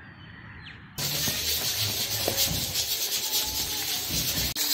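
Hands knead soft dough with quiet squishing and patting.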